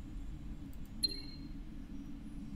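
A soft electronic chime rings once as a menu opens.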